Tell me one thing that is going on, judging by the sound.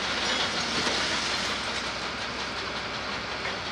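Rubble scrapes and clatters as an excavator bucket moves through it.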